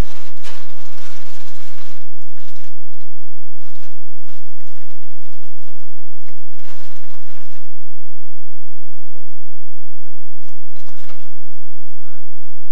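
A person rustles softly nearby.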